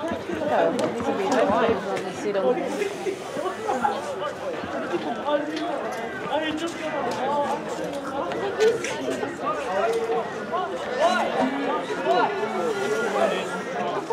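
Many voices of children and adults chatter and call out outdoors, close and far.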